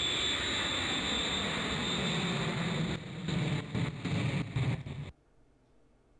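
A toy plane buzzes as it flies about.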